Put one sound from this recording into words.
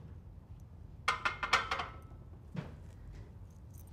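A barbell clanks onto its rack.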